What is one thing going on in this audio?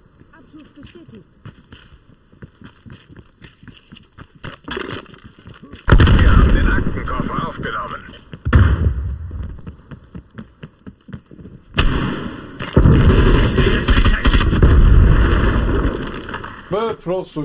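A man talks through a headset microphone.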